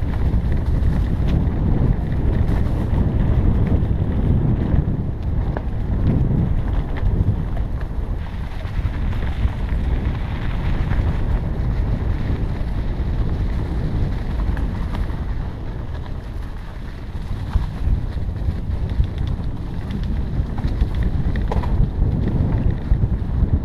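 Wind buffets loudly against the microphone.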